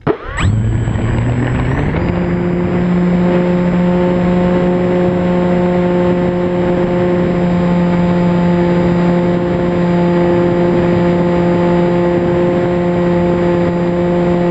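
Wind rushes past the airplane in flight.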